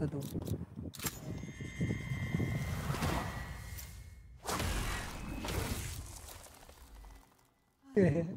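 A deep magical whoosh swells and fades.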